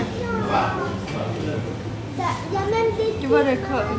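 A woman speaks close by in a calm voice.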